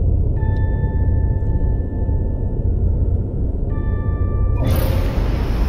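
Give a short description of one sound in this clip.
A warning chime beeps repeatedly inside a cockpit.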